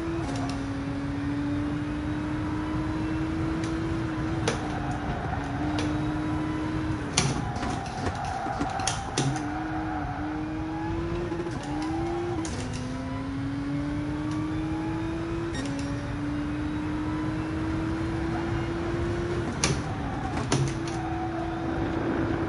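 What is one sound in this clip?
A racing car's engine drones, rising in pitch and dropping back with each gear change.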